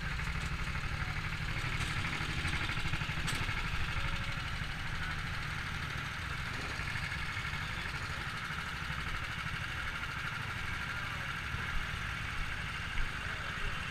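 Kart engines idle and rumble steadily close by.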